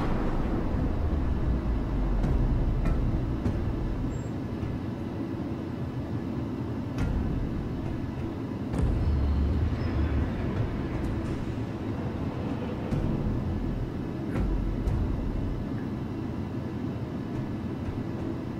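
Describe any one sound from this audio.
A lift rumbles with a low, steady hum as it moves, now and then swelling louder.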